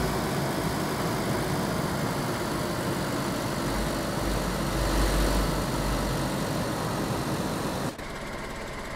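A car engine drones steadily as a car drives along.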